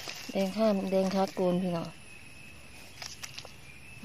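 A knife cuts through a mushroom stem.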